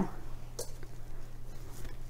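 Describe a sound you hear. A woman talks calmly into a close microphone.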